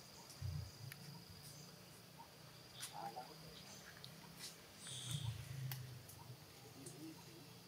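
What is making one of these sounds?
Monkeys scuffle and rustle in dry leaves.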